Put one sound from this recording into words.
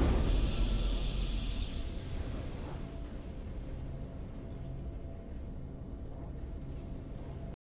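A triumphant fanfare swells and then settles into low, steady music.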